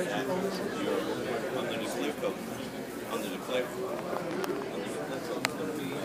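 Adult men talk and chatter nearby in a crowd.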